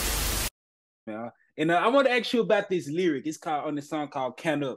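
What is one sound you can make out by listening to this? A young man laughs and talks with animation over an online call.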